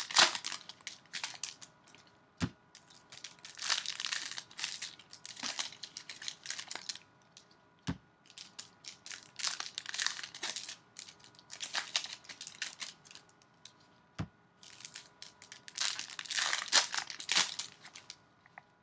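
Plastic wrappers crinkle and rustle as they are handled.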